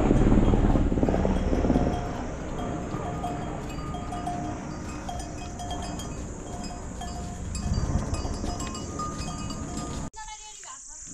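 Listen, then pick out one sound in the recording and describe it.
Pack animals' hooves thud and shuffle on dry leaves.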